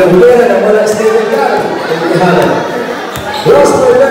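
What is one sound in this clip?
A basketball bounces on a hard court.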